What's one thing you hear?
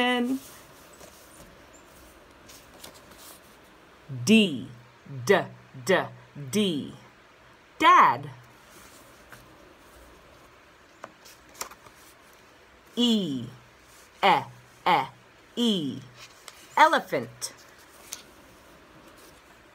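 Paper cards rustle in a woman's hands.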